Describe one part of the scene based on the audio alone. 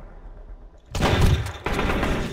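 A shotgun fires a loud blast that echoes.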